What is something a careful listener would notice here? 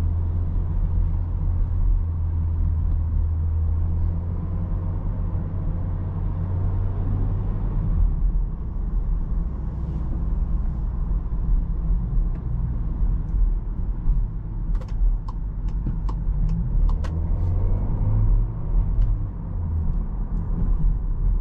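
Tyres rumble on the road.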